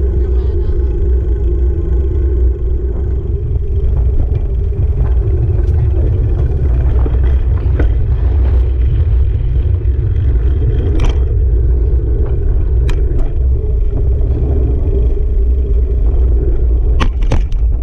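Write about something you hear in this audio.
A motorcycle engine hums steadily while riding slowly.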